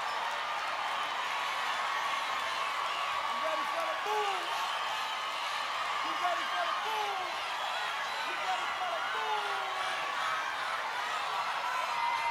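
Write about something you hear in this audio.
A large crowd cheers and screams loudly throughout.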